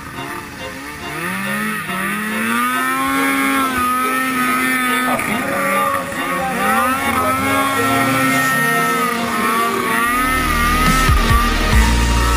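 A snowmobile engine revs loudly, rising and falling in pitch as it spins.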